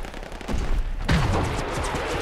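A flare pistol fires with a sharp pop.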